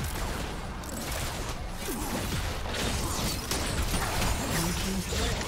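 Video game combat effects whoosh and crash during a fight.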